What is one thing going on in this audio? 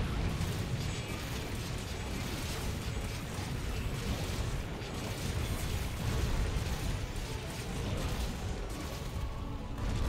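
A huge beast stomps and rumbles with heavy, deep thuds.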